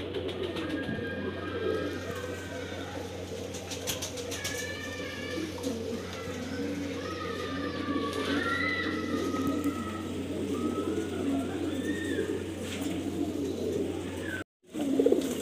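Small birds chirp and twitter in the background.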